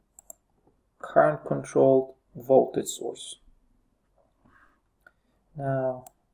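A man speaks calmly into a microphone, explaining, with pauses.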